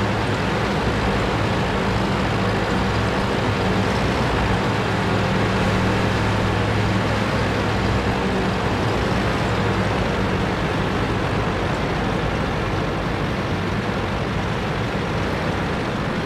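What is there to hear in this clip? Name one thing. A heavy tank engine rumbles steadily.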